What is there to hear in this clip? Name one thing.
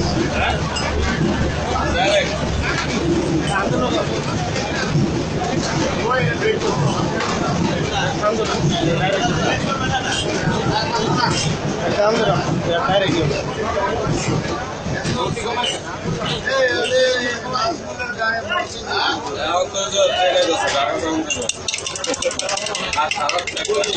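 Tea is poured back and forth between mugs.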